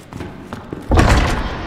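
A heavy metal door bangs open.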